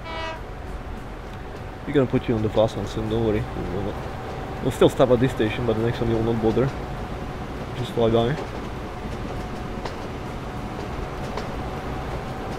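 A high-speed train hums along the tracks.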